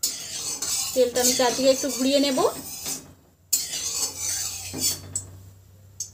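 A spatula scrapes around a metal pan.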